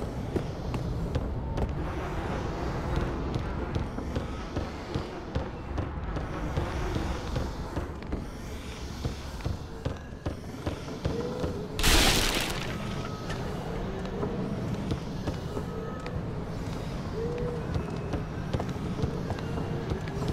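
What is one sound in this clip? Armoured footsteps thud on wooden boards.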